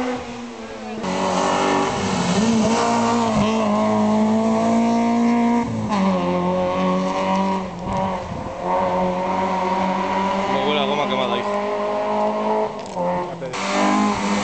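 A rally car engine roars loudly as the car speeds past close by, revving and changing gear.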